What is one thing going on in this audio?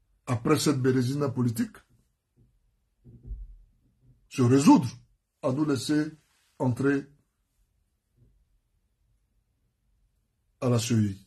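A man speaks calmly close to a microphone, in short phrases with pauses.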